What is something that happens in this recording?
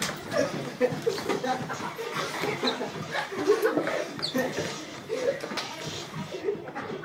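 Bodies thump and scuffle on a hard floor.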